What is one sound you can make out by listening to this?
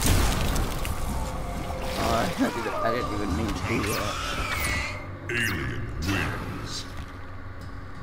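A creature screeches and hisses loudly.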